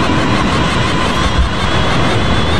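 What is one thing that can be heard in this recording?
A missile launches with a sudden whoosh.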